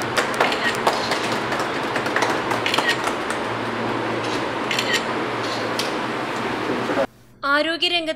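A small crowd applauds with scattered claps.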